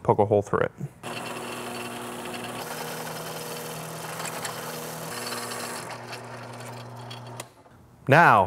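An electric drill whirs steadily, boring into metal.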